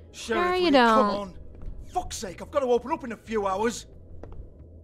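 A man shouts angrily and with agitation, close by.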